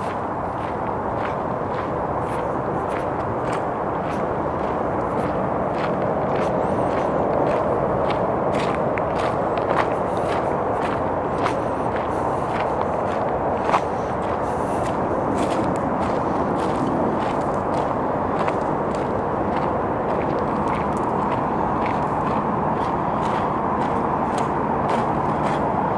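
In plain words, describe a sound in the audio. Footsteps crunch steadily on a gravel path outdoors.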